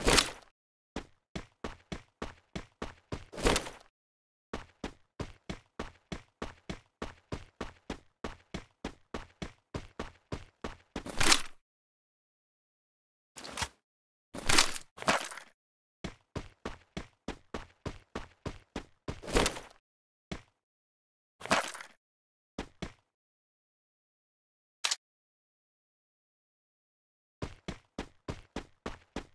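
Video game footsteps run at a steady pace.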